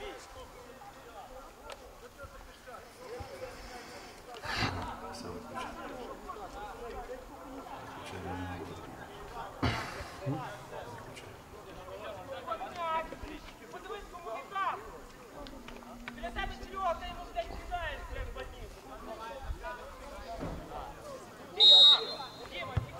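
Men shout to each other across an open field in the distance.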